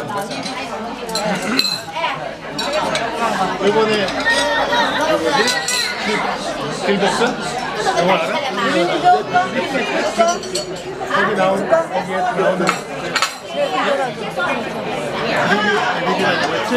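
Many people chatter around the room.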